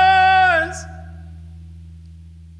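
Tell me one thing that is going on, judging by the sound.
An electric guitar holds a note that bends down and rings out.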